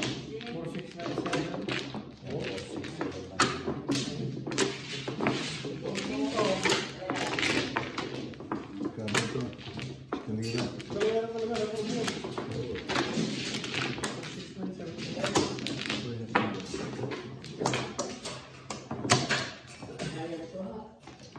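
Plastic tiles clatter and clack as hands shuffle them on a table.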